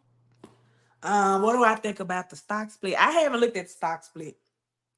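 A woman speaks with animation, close to a microphone.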